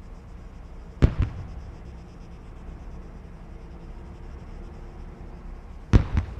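Sharp blasts crack nearby.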